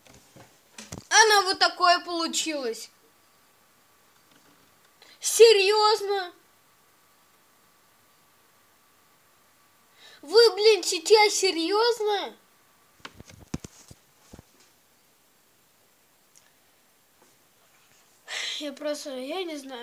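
A boy talks with animation close to the microphone, in short bursts.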